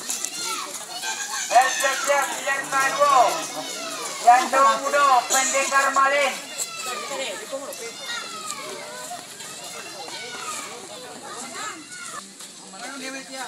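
Children shout and chatter nearby outdoors.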